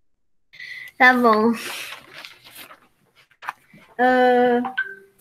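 A young girl speaks in a high, singsong voice over an online call.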